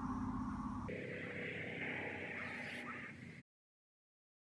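A spray can hisses.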